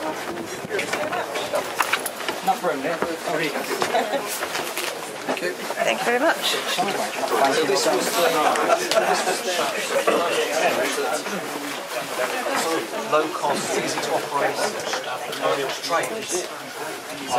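Many elderly men and women chatter close by in an enclosed space.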